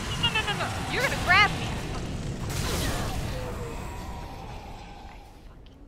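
A fiery explosion roars and crackles.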